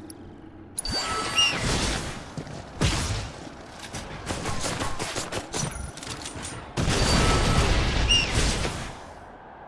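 Magic blasts whoosh and burst.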